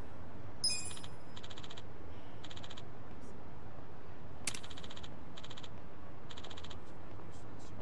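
Short electronic blips tick rapidly in bursts.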